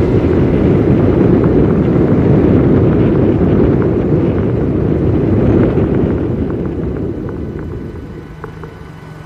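A bus rumbles loudly past close by and fades away.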